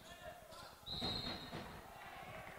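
A referee's whistle blows short and sharp.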